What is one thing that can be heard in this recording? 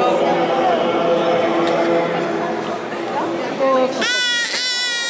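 A crowd of people murmurs nearby.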